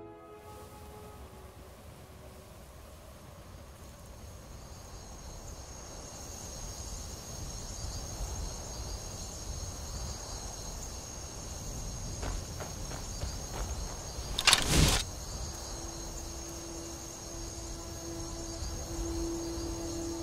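Wind blows steadily outdoors, slowly growing louder.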